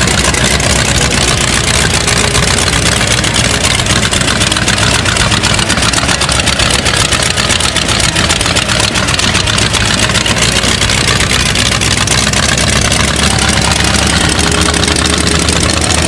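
A hot rod engine idles loudly with a rough, rapid rumble.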